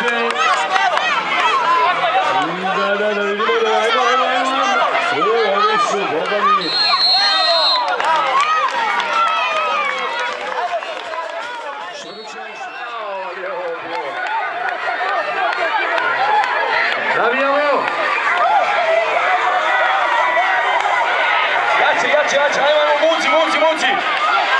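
A crowd of children shouts and cheers loudly outdoors.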